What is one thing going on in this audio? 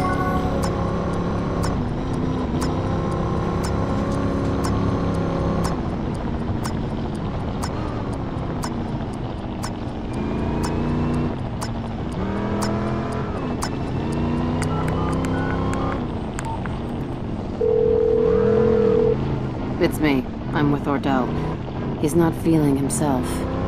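A car engine roars and revs up and down as it races.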